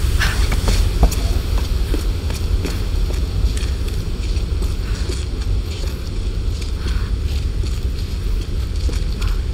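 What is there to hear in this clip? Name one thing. Footsteps scrape on stone.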